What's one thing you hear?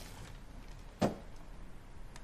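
A cabinet door clicks as it is opened.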